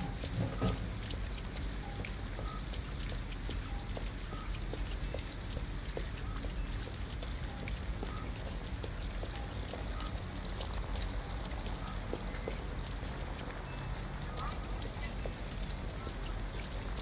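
Footsteps splash on a wet street.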